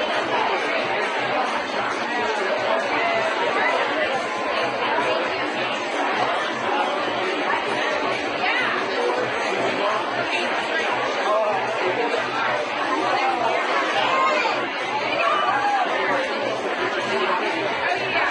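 A crowd of men and women chatter all around at close range.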